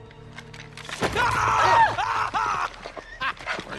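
A man screams loudly in fright.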